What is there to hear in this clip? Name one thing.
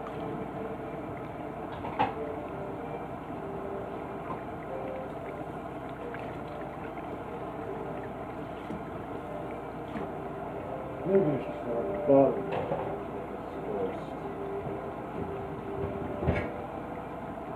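Water runs steadily from a tap.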